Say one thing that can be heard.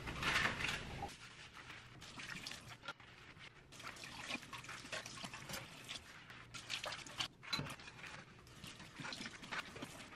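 Dishes clatter in a metal sink.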